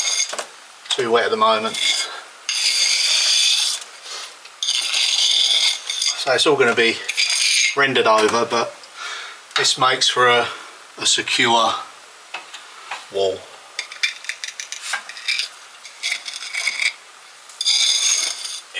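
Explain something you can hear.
A scraping tool rasps against stone and mortar.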